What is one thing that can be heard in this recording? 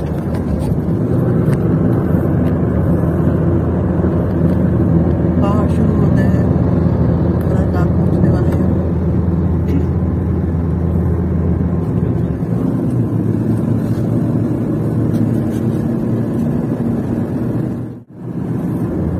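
Tyres roar steadily on a highway, heard from inside a moving car.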